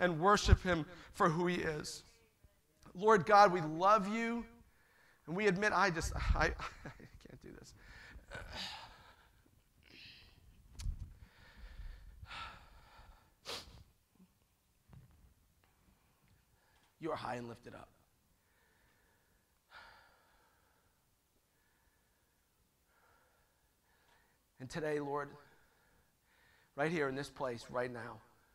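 A man speaks with feeling through a microphone in a large echoing hall, in short bursts with pauses.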